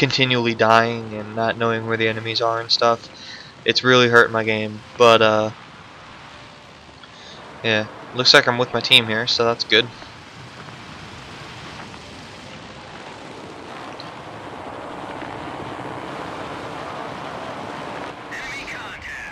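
A piston-engine propeller fighter plane drones in flight.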